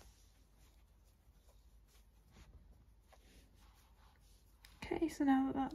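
Thread rustles softly as it is pulled through crocheted yarn.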